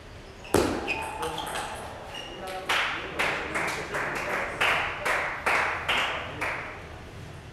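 A table tennis ball clicks back and forth in quick bounces, echoing in a large hall.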